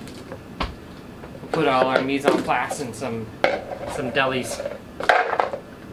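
A plastic container crinkles and rattles in a man's hands.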